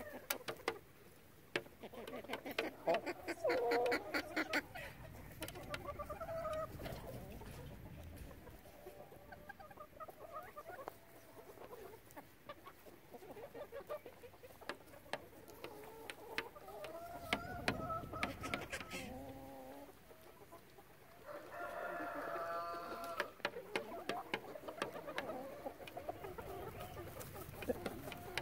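Chickens cluck and cackle close by.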